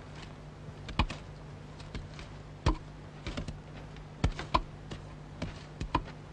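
Wooden pestles thud steadily into a mortar.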